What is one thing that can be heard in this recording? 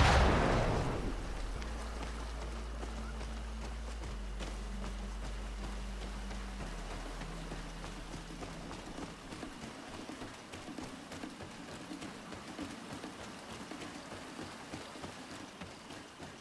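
A stream trickles nearby.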